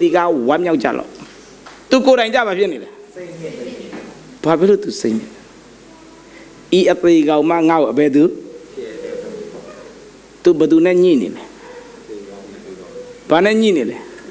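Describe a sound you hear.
A man speaks with animation through a microphone in a reverberant hall, in bursts with pauses.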